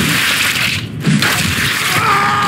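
A heavy blunt weapon strikes a body with a wet, squelching thud.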